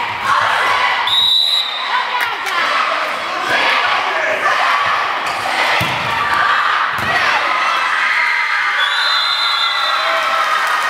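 A referee's whistle blows shrilly in short blasts.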